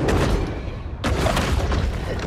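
A large creature's jaws snap and crunch.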